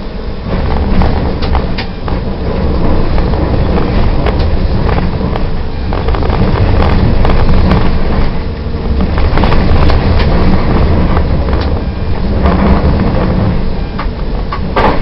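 Tram wheels clack over rail joints.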